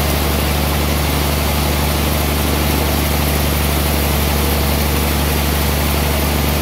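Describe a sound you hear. A saw blade hisses steadily as it cuts through thick wood.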